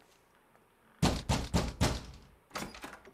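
A fist knocks hard on a wooden door.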